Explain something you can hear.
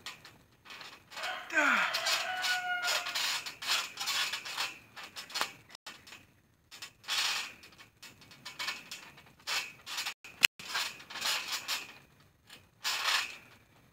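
A young man's feet thump and bounce on a trampoline mat.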